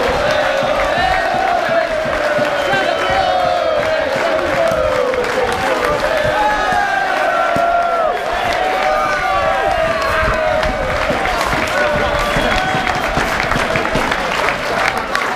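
A large crowd of men sings a chant together loudly, close by and all around.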